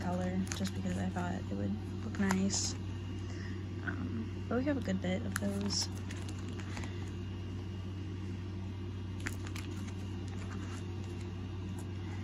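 Plastic sleeves in a ring binder crinkle and rustle as pages are turned.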